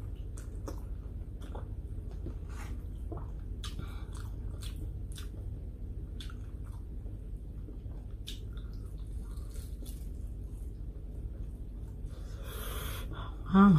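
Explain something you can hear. A woman chews food close up with soft, wet mouth sounds.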